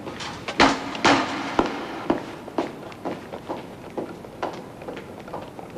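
Footsteps thud on metal steps.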